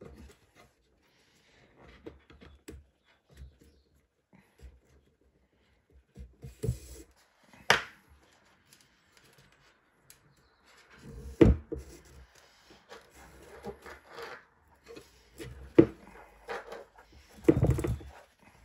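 Cord rustles and rubs as hands pull it through a braid.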